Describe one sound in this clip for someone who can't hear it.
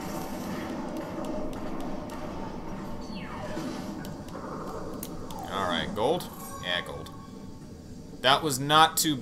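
Lively game music plays with bubbly sound effects.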